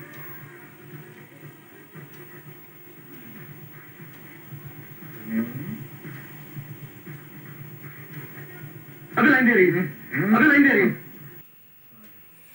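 A film soundtrack plays through a small television loudspeaker.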